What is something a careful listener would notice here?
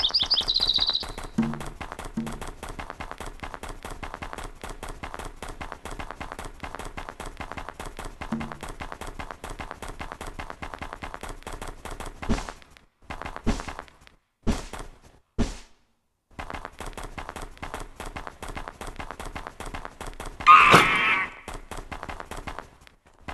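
A wolf's paws pad quickly over crunchy snow.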